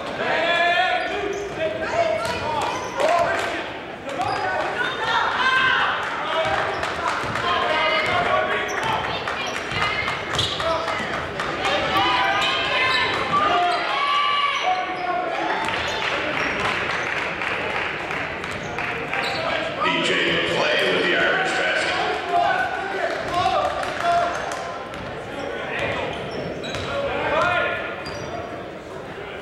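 A crowd murmurs and chatters in an echoing gym.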